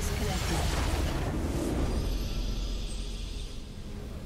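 A triumphant fanfare swells.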